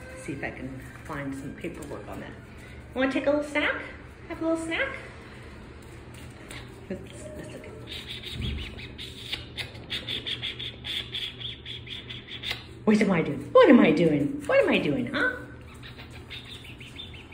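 A puppy's paws patter and rustle on crinkly pads.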